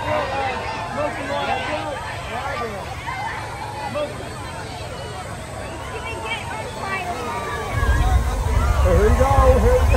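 A crowd of people chatters and calls out outdoors nearby.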